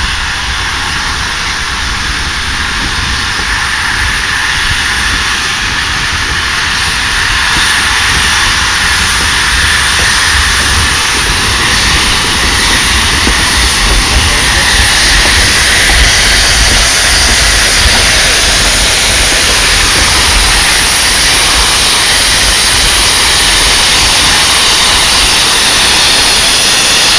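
Steam hisses steadily from a locomotive, growing louder as it nears.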